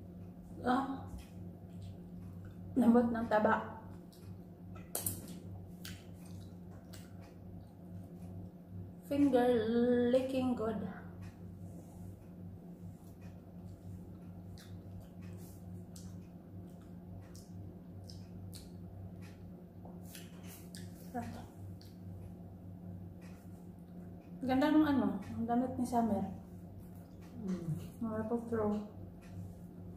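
A woman chews food with soft smacking sounds.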